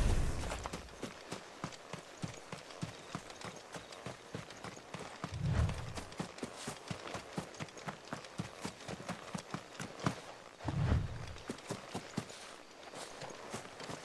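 Footsteps tread steadily on grass and dirt.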